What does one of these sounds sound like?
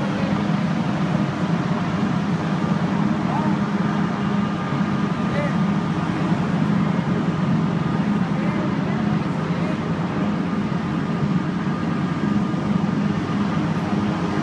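Traffic rumbles past on the road.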